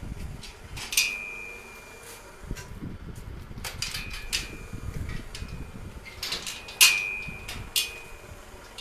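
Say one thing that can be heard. Loose plastic crates rattle and knock in the back of a truck.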